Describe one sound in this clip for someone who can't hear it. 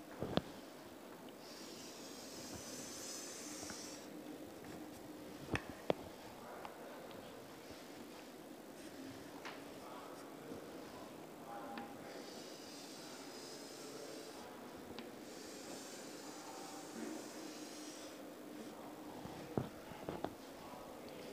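Chalk taps sharply against a blackboard.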